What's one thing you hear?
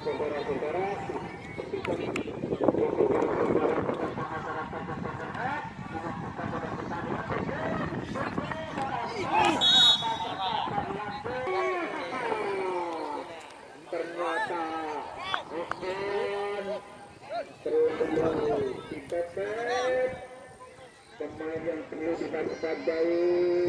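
Children talk and shout excitedly close by, outdoors.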